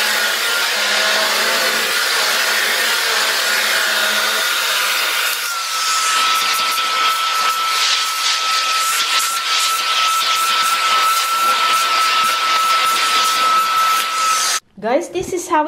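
A vacuum cleaner whirs with a steady high whine.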